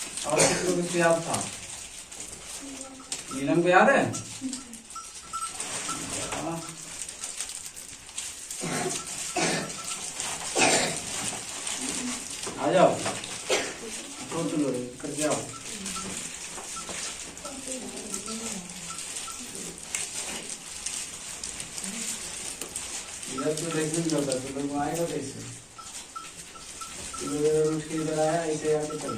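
A man speaks calmly to a group of children.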